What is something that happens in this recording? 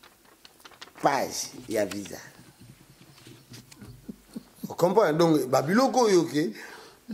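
A man speaks animatedly close to a microphone.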